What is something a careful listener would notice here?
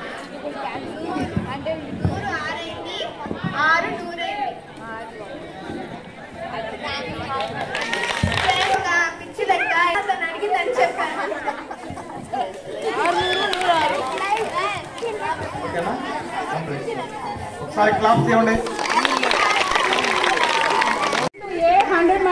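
Girls speak into a microphone over a loudspeaker, reciting lines outdoors.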